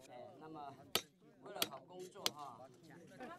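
A hammer knocks sharply on stone.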